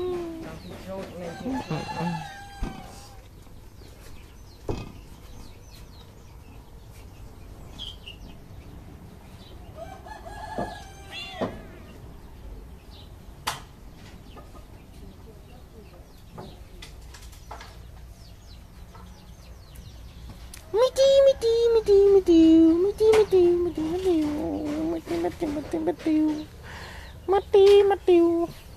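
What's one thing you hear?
A kitten meows repeatedly, high and plaintive, close by.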